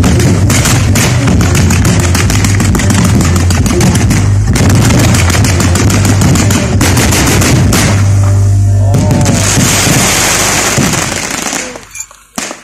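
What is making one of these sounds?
Fireworks hiss and whoosh as they shoot up.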